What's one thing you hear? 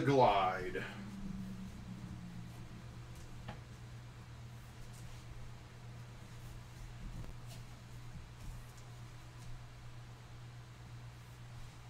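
Plastic card sleeves rustle and crinkle in hands.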